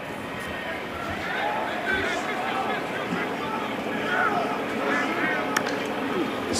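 A large outdoor crowd roars steadily in a stadium.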